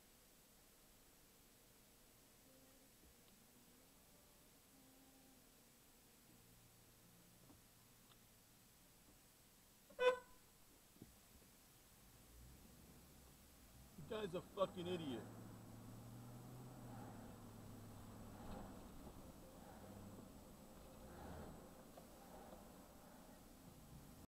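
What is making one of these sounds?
A car engine idles quietly, then rumbles louder as the car pulls away and drives on.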